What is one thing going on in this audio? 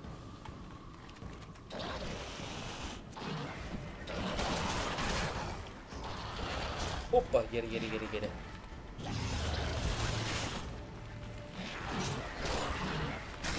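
Electric magic crackles and zaps in bursts.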